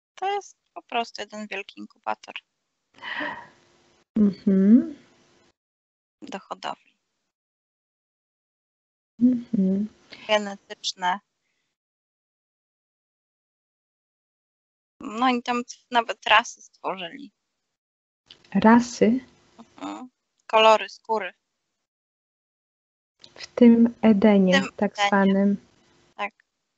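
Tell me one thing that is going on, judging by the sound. A woman speaks calmly in short bursts with pauses, heard through an online call.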